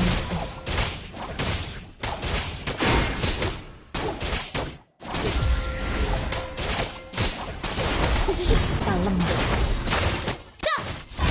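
Game fight effects clash and burst.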